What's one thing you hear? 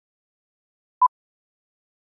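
A single short beep sounds.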